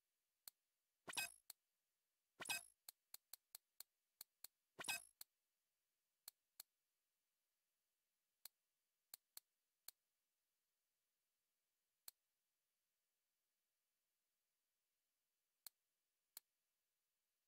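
Game menu sounds click and whoosh as items are browsed.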